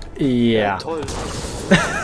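A gun fires a burst of shots.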